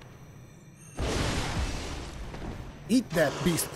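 A burst of flame roars and hisses.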